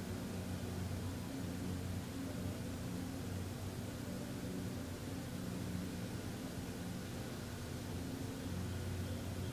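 A man chants in a low, steady hum close by.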